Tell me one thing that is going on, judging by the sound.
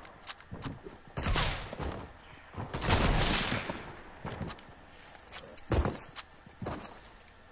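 Footsteps thud quickly up wooden stairs.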